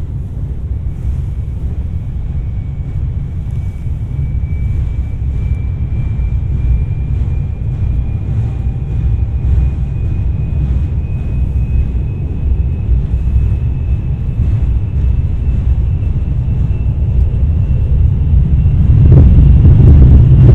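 A train's motor whines, slowly rising in pitch.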